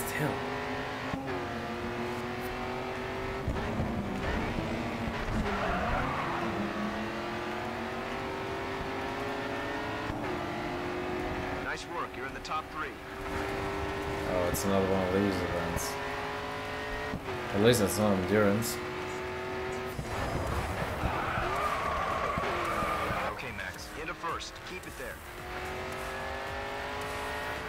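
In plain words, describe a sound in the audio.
A racing car engine roars steadily, rising and falling as gears shift.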